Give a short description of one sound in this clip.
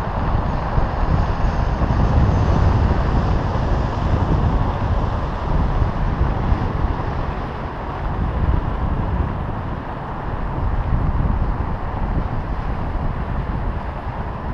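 Strong wind rushes and buffets steadily against the microphone.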